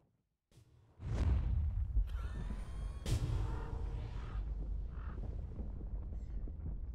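Magical spell effects whoosh and crackle during a fight.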